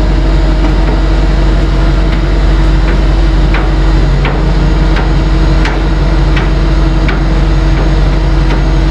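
A winch engine hums steadily.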